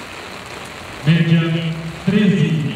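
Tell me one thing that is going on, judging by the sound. A man calls out over a loudspeaker.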